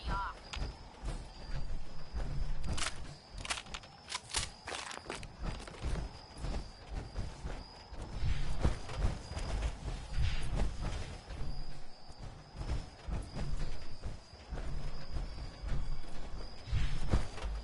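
Heavy armoured footsteps thud and clank steadily.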